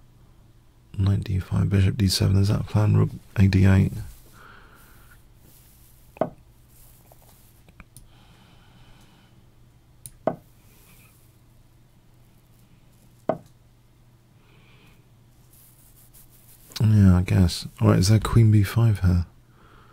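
A middle-aged man talks calmly and close to a microphone, in short bursts.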